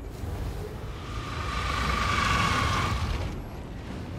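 A magical blast crackles and roars.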